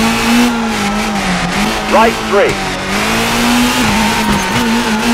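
A rally car engine drones steadily, rising and dipping in pitch.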